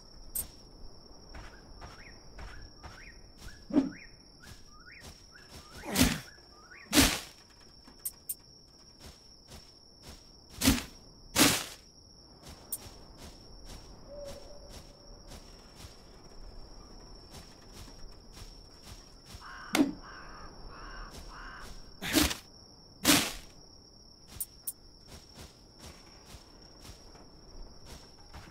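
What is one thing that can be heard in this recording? Footsteps pad over grass.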